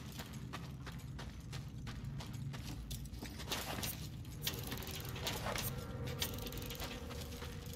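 Footsteps tread steadily on a hard floor.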